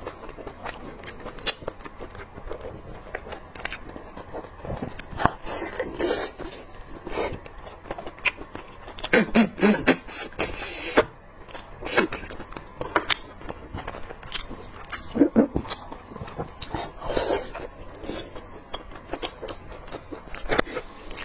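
Meat and bone crunch and tear between hands close by.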